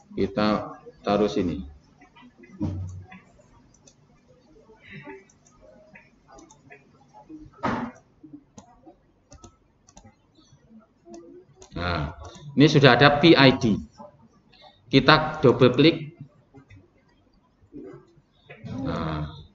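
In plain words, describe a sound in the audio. A young man speaks calmly into a microphone, explaining in bursts with pauses.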